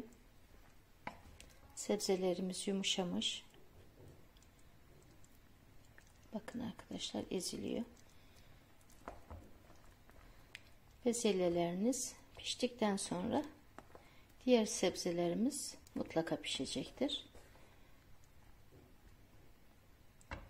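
A spoon stirs thick stew in a pan.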